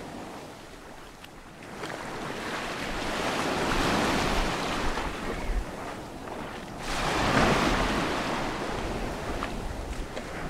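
Small waves wash up and break on a pebbly shore, rising and falling in surges.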